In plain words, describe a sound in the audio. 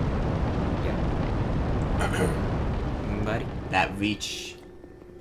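A fireball roars with a deep rumble.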